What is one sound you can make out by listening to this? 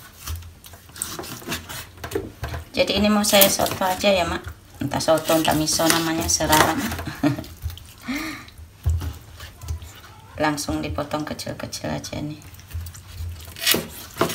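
A knife chops through raw meat on a wooden board with soft knocks.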